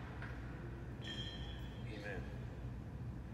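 Metal and glass vessels clink softly.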